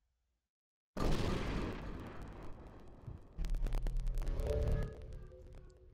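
A spaceship swoops in with a rushing whoosh and a low rumble.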